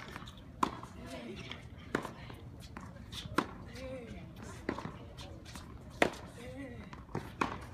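Tennis shoes squeak on a hard court.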